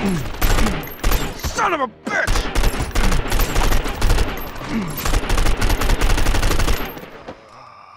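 Gunfire from an assault rifle rattles in rapid bursts.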